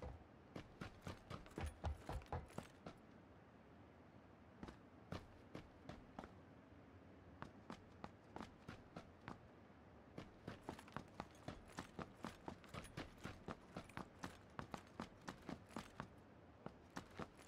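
Footsteps thud steadily across a hard floor indoors.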